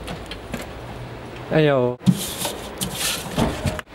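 A metal mailbox door clatters.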